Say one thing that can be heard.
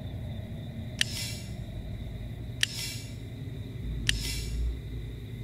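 A short bright chime rings with a sparkling tail, several times.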